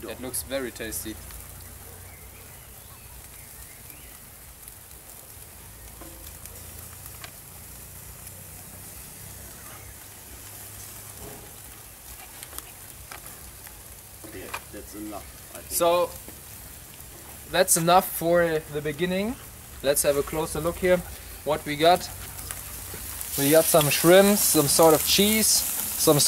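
Meat sizzles on a grill.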